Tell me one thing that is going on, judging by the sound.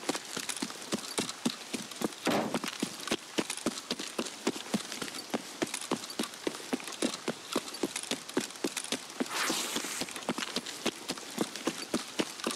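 Footsteps crunch quickly and steadily over gravel.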